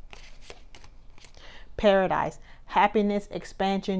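A playing card is lifted and held up with a soft rustle.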